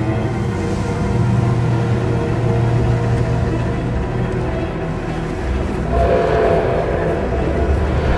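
Wind blows steadily across open sand.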